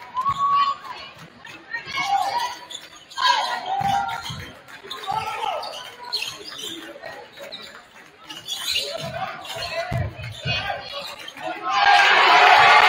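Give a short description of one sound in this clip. Spectators shout and call out in an echoing gym.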